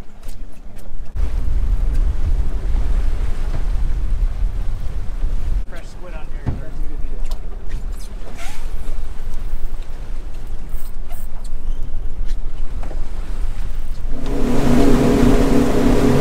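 Boat engines rumble steadily outdoors.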